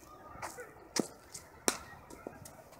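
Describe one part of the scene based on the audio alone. A cricket bat cracks sharply against a ball.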